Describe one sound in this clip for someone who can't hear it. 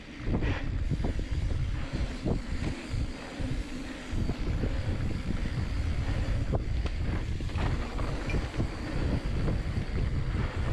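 Bicycle tyres rumble over a packed dirt trail.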